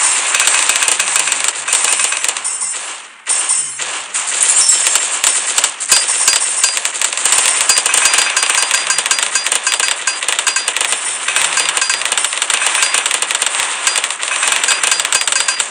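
Cartoon balloons pop in a fast, crackling stream of game sound effects.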